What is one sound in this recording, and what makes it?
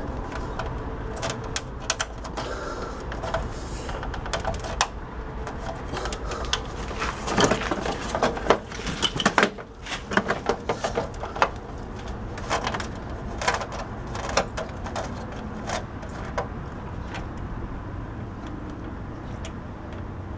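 Hands press and click plastic casing parts together.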